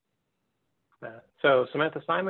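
A man speaks calmly into a microphone, heard close up.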